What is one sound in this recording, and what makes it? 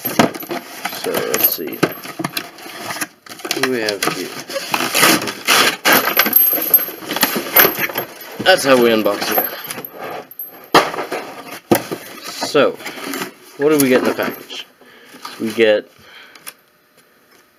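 Cardboard rustles and scrapes as a box is opened by hand.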